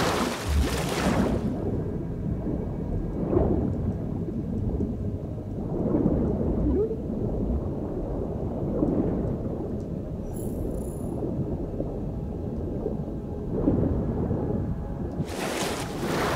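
Muffled water rumbles and bubbles underwater.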